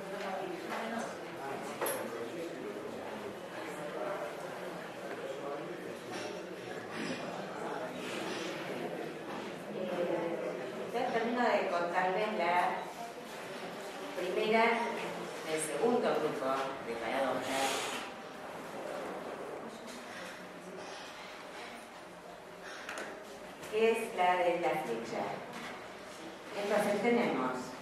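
A woman speaks calmly into a microphone in a room that echoes a little.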